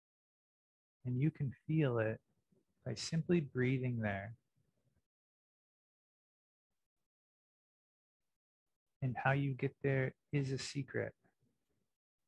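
A man speaks calmly and slowly into a close microphone, with long pauses.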